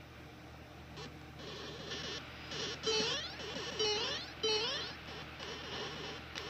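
A handheld game console plays small bleeping game sounds through its tiny speaker.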